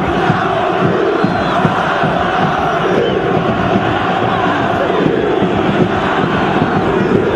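A large crowd roars and chants loudly in an open stadium.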